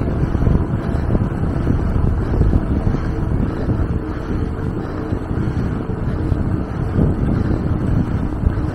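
Wind rushes and rumbles steadily outdoors.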